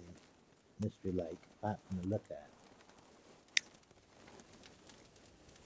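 A fire crackles softly in a stove.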